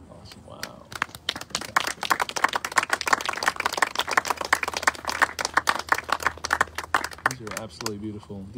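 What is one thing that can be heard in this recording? A small crowd claps and cheers outdoors.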